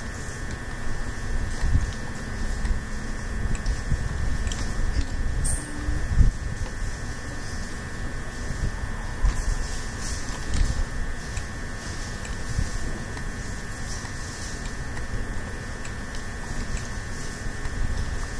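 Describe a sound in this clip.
A pickaxe taps and chips at stone blocks in quick repeated knocks.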